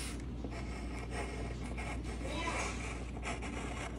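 A pencil scratches and scrapes across a wooden board.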